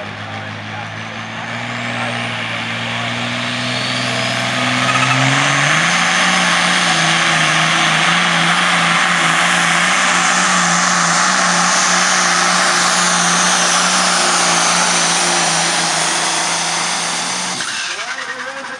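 A diesel pulling tractor roars at full throttle.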